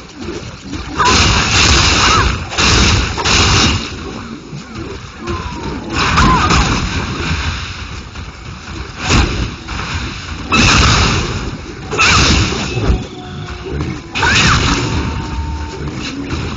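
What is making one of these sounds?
Sword blows and game combat effects clash in bursts.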